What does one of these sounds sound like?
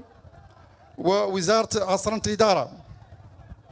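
A man speaks into a microphone, heard through loudspeakers outdoors, in a formal, measured way.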